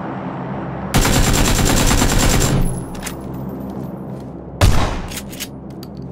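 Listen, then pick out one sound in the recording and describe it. An automatic rifle fires a rapid, loud burst of shots indoors.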